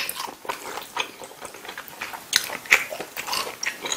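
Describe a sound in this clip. A young man slurps noodles noisily.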